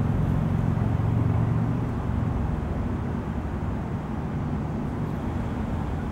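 A wasp's wings buzz up close.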